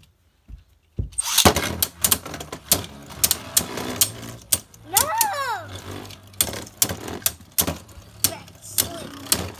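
Spinning tops clash together with sharp clicks.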